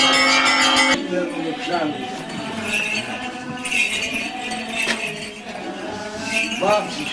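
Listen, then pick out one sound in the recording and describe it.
A crowd of men and women murmurs and talks nearby.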